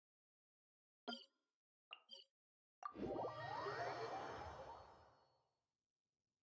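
Menu clicks and a soft chime sound as a map opens.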